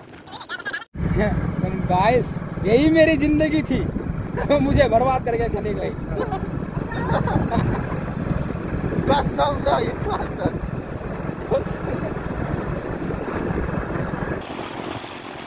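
A motor scooter engine hums steadily as it rides along.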